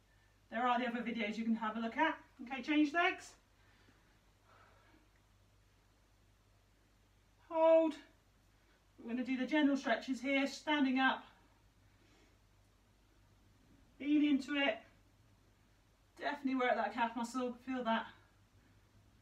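A young woman speaks calmly and clearly in a quiet room, pausing between phrases.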